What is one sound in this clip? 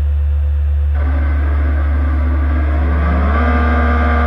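A race car engine idles with a steady hum.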